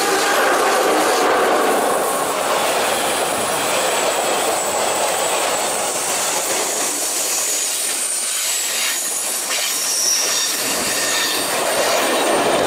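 A freight train rumbles past close by, its wagons rattling and clattering on the rails.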